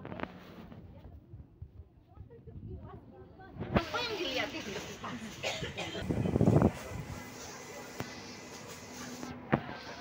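A crowd of adults chatters nearby.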